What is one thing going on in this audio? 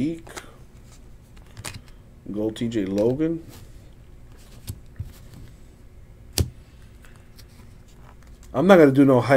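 Trading cards rustle and flick between fingers.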